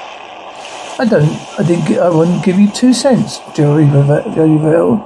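A man speaks in a low voice close to the microphone.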